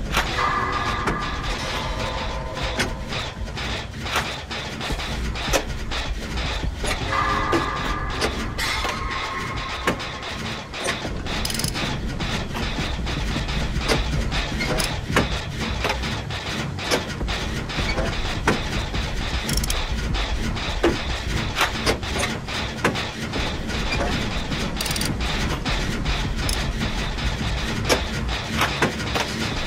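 Metal parts clank and rattle as hands work on a generator.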